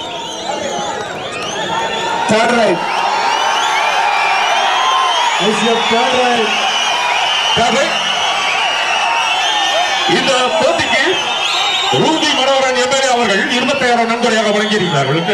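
A large crowd cheers and shouts loudly throughout.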